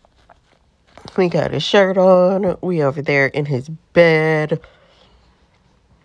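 A young woman speaks with exasperation, close to the microphone.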